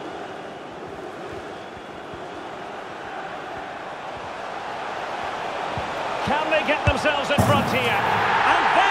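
A large stadium crowd roars and grows louder.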